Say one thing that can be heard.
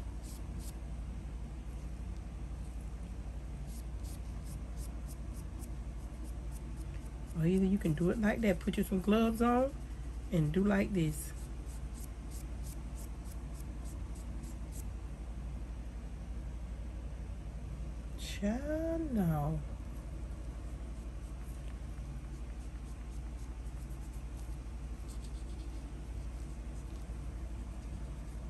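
A wooden clothes peg's spring clicks softly as it is opened and closed.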